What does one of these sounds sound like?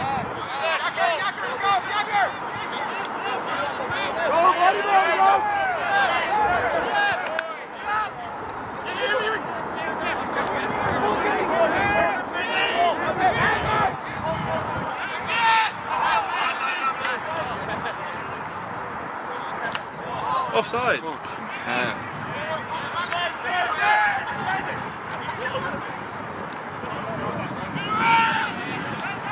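Many young men shout and call to each other outdoors.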